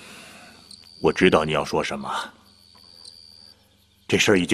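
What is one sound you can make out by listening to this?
A middle-aged man answers calmly in a low voice nearby.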